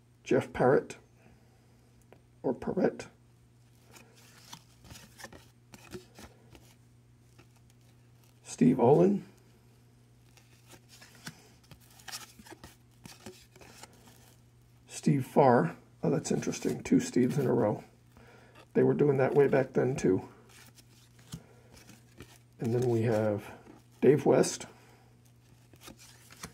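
Trading cards rustle and slide softly as they are shuffled by hand.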